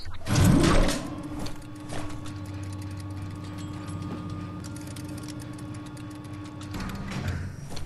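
A lift hums steadily as it moves.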